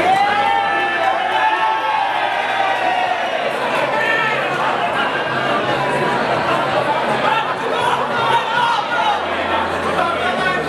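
A large crowd chatters and cheers in an echoing hall.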